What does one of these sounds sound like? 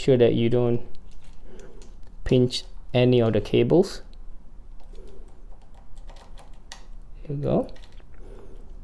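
Small metal tool clicks and ticks against a bicycle handlebar.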